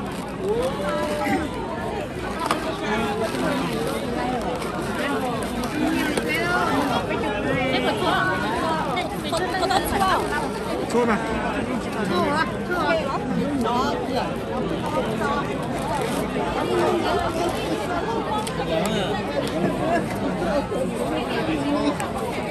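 A crowd of people chatters all around in a large room.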